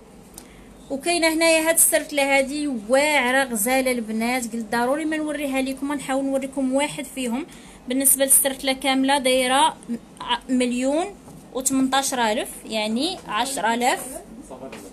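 A woman speaks with animation close to the microphone.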